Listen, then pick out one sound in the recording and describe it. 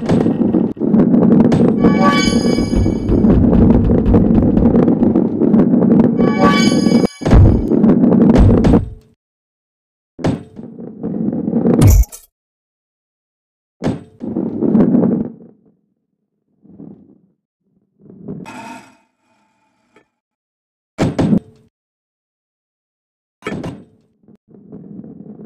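A ball rolls along a wooden track with a low rumble.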